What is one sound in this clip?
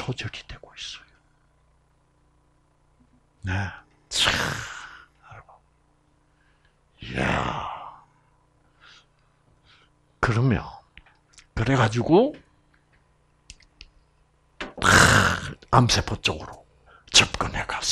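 An elderly man speaks slowly in bursts with long pauses, close to a microphone.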